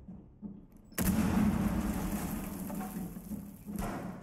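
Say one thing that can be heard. Gunfire rattles in a rapid burst.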